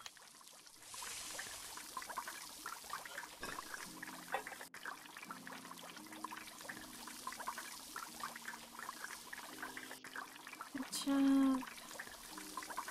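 Fries bubble and crackle in hot oil.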